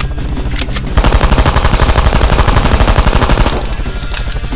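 A submachine gun fires in a rapid, loud burst.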